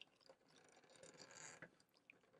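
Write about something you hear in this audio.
Plastic parts rub and click together under fingers.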